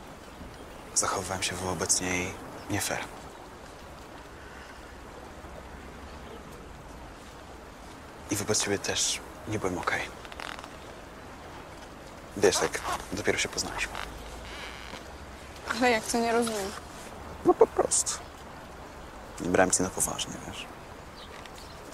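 A teenage boy speaks quietly, close by.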